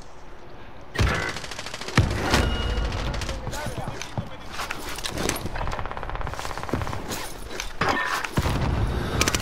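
Gunshots crack loudly and echo.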